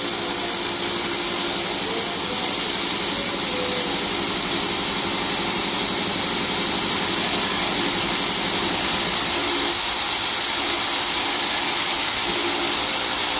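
A laser marking machine buzzes and hisses steadily.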